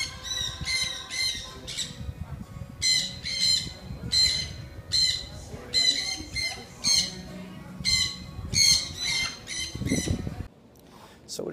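Parrots squawk loudly and repeatedly.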